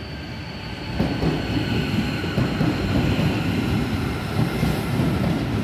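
A train rushes past close by with loud rattling and whooshing.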